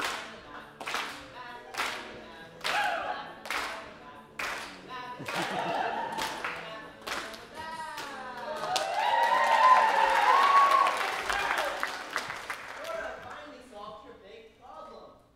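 Young performers speak and call out loudly in a large echoing hall.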